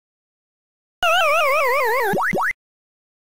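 A descending electronic warble plays as the game character dies.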